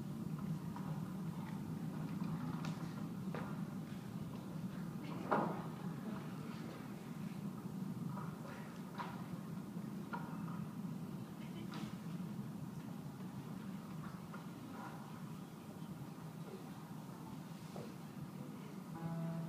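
A group of guitars plays together in a large echoing hall.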